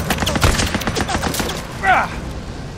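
Rapid gunshots crack close by.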